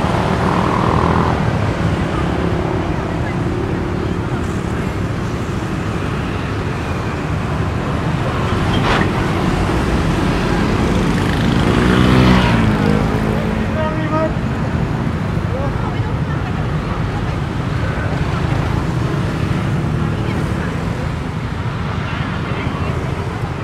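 Steady city traffic rumbles outdoors.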